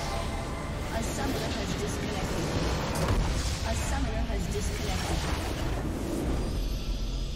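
A large structure explodes with a loud rumbling blast.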